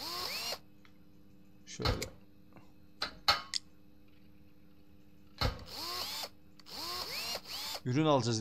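An impact wrench whirs in short bursts.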